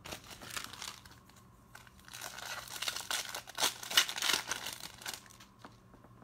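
Foil card packs crinkle and rustle as hands handle them.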